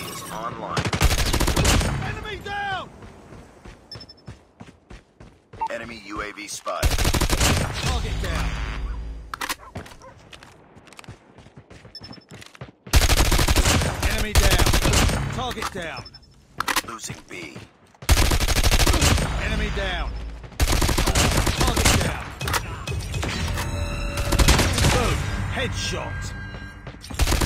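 Automatic gunfire rattles in rapid, loud bursts.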